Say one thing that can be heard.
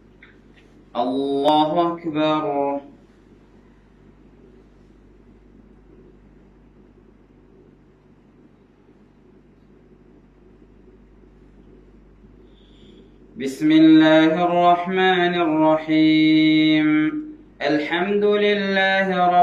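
A man chants loudly in a melodic voice, close by.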